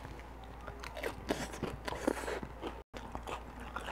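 A man chews food with soft, wet mouth sounds.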